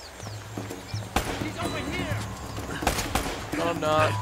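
Pistol shots ring out sharply.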